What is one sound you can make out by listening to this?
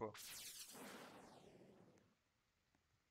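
A swooshing game effect sweeps down and fades.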